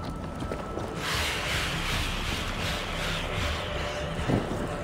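A torch flame hisses and crackles close by.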